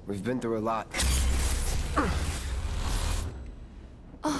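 A heavy sword swings through the air with a loud whoosh.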